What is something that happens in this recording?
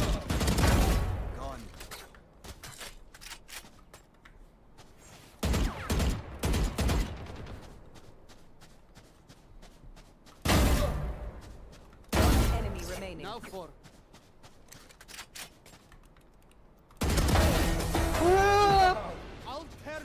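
Rifle shots fire in short, loud bursts.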